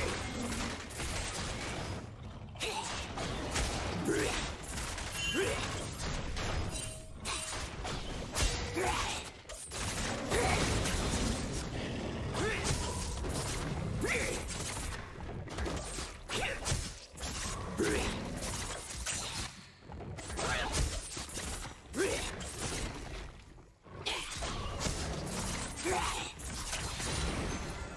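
Game attacks hit with sharp impacts.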